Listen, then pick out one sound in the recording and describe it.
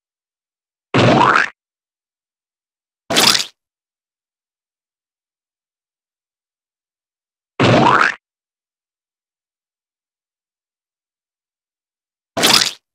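A bug is squashed with a short, wet splat, again and again.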